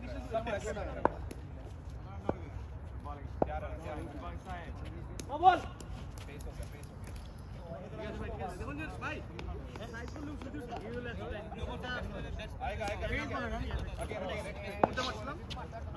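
A bat knocks a ball with a sharp crack.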